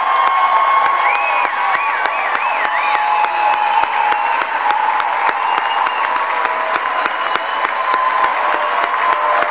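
Audience members cheer and whistle.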